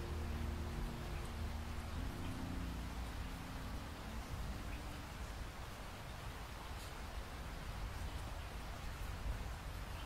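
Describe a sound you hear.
Rain patters steadily against a window.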